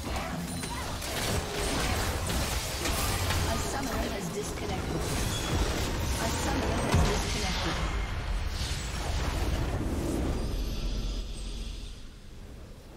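Magic blasts and crashes ring out as a crystal structure is destroyed.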